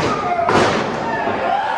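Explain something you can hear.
A body slams onto a wrestling mat with a heavy thud.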